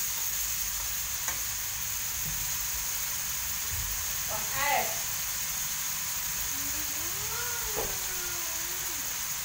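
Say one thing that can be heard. Meat sizzles softly in a hot pan.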